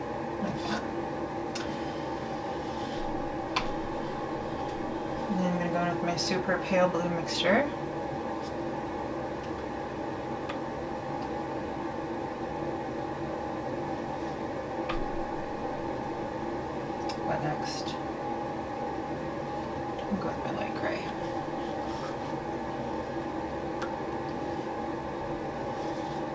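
Plastic cups tap and click softly against each other.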